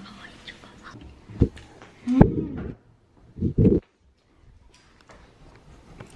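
A boy slurps food.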